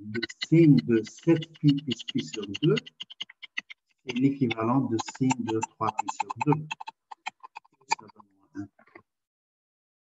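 A man explains calmly through an online call.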